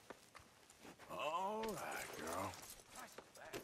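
A horse whinnies loudly nearby.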